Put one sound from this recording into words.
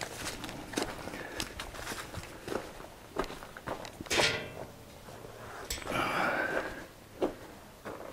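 A metal grate rattles and clanks.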